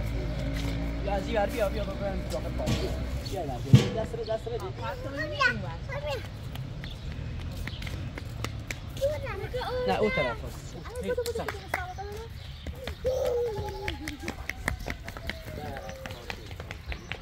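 Children talk and call out nearby.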